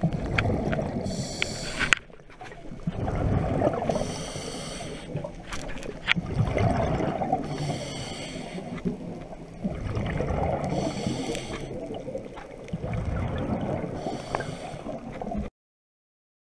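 Bubbles from a diver's breathing gurgle and rush upward in regular bursts, underwater.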